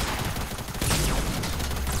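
A gun fires a shot.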